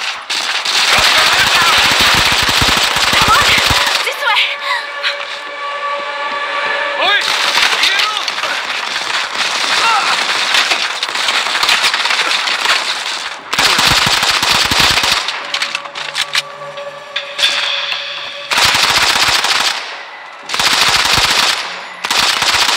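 Rifle fire rattles in rapid bursts.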